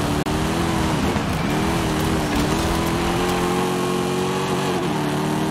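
A car engine roars steadily, dipping briefly as the gears shift.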